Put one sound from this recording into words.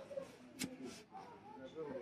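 A lighter clicks and sparks.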